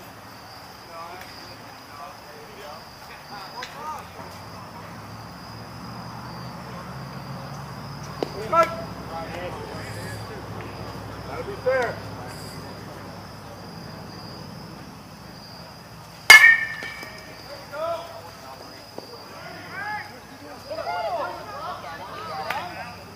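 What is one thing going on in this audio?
Men call out across an open field.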